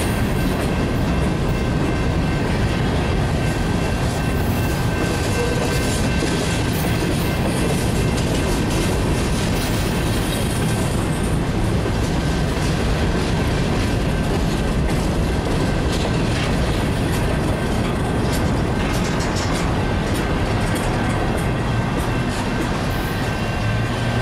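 Freight train cars rumble and clatter along the tracks close by.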